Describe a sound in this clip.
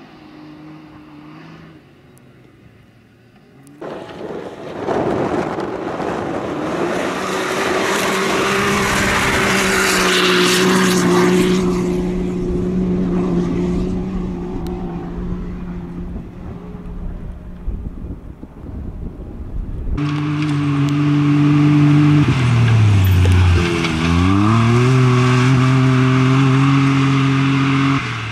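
An off-road buggy engine roars and revs as it races past outdoors.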